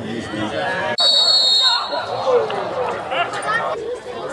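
A crowd cheers loudly after a shot at goal.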